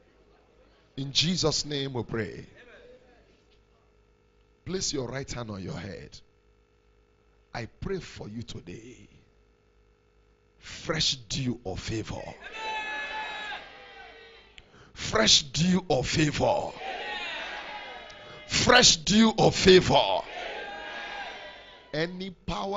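A man preaches loudly into a microphone, heard through loudspeakers in an echoing hall.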